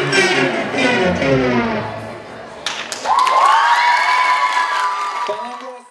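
Music plays through loudspeakers in a large hall.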